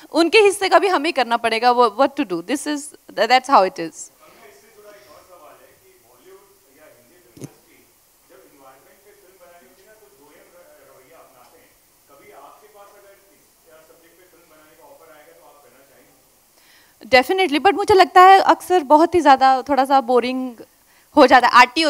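A young woman speaks calmly into a microphone, heard through loudspeakers.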